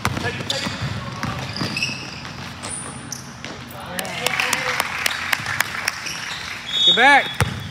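A basketball bounces on a hardwood floor, echoing in a large gym.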